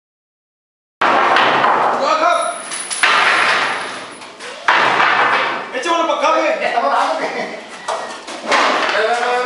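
A group of young men shout and call out together close by.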